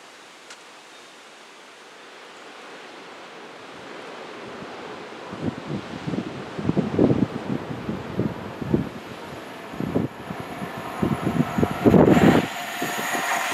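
A train approaches from afar with a slowly growing rumble.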